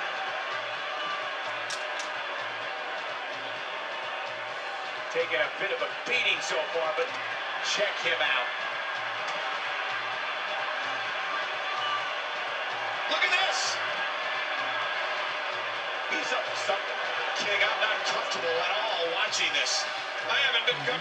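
A crowd cheers and roars steadily from a television.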